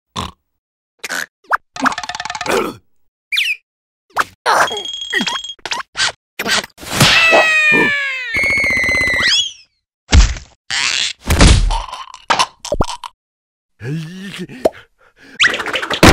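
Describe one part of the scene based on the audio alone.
A cartoon creature mumbles in a muffled, squeaky voice.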